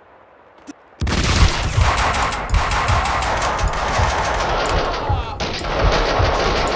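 Rapid gunshots fire over and over.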